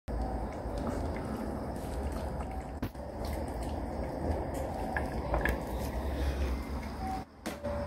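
A small dog eats noisily from a metal bowl.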